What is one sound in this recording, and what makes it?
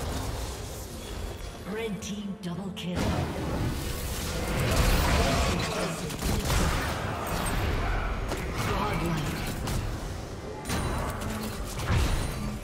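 Computer game combat effects clash, whoosh and burst.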